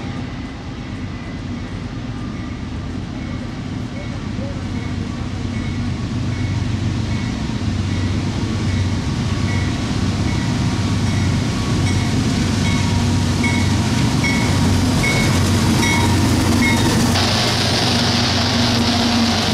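Diesel locomotive engines rumble, growing louder as a freight train approaches.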